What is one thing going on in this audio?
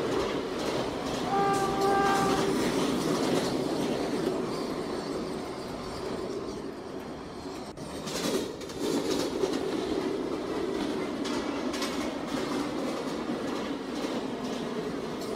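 A subway train rumbles steadily through a tunnel.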